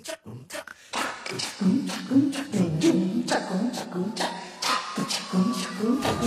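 A man sings along to music.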